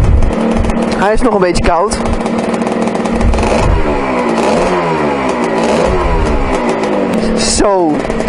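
A motorcycle engine revs up sharply with a whine.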